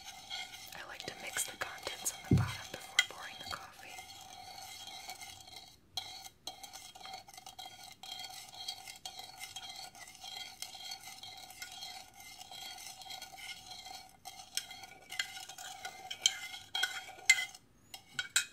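A spoon clinks against a ceramic mug as it stirs.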